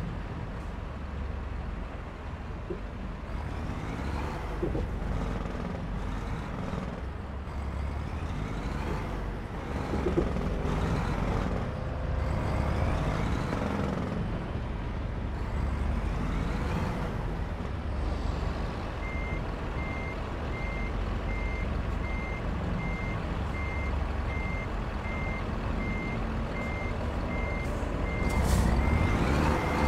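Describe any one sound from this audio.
A truck engine rumbles low and steadily.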